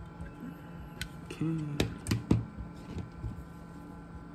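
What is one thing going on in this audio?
Metal tweezers click and tap against small parts in a metal box.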